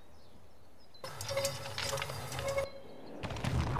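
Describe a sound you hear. A wooden crane mechanism creaks and grinds as it turns.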